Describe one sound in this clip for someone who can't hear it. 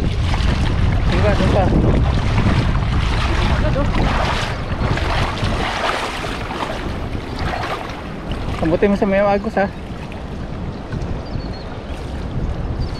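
Water splashes and swirls around legs wading through a shallow river.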